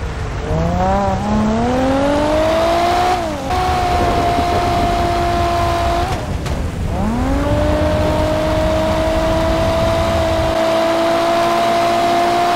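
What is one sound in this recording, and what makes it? Rain patters steadily on the road.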